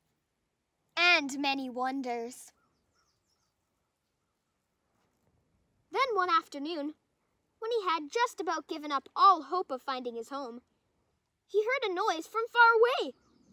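A young girl reads aloud calmly, close by.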